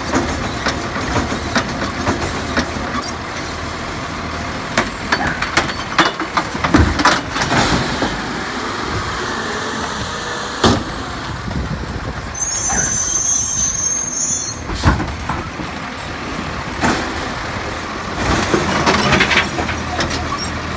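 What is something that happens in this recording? A hydraulic arm whines as it lifts and tips a plastic bin.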